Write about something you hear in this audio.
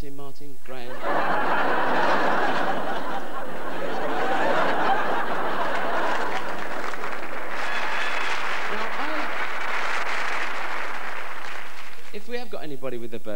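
An audience applauds and cheers in a large hall.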